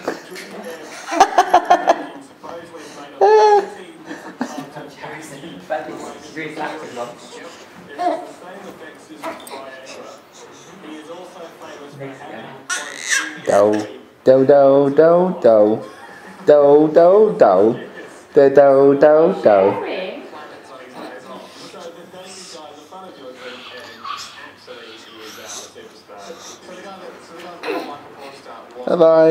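A baby babbles and squeals loudly close by.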